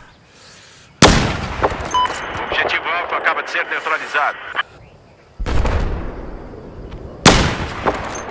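A sniper rifle fires a loud, sharp shot.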